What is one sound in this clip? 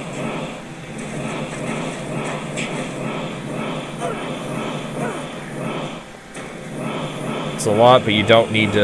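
Fiery explosions roar and crackle in quick succession.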